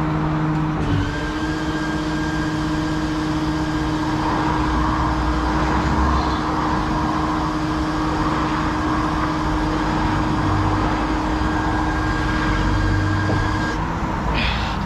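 A hydraulic boom whines steadily as it extends.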